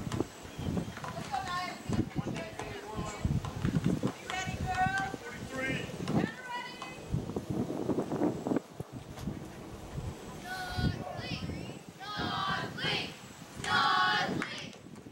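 Young women shout and chant cheers outdoors.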